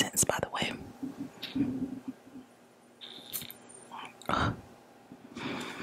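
A perfume bottle sprays with a short hiss.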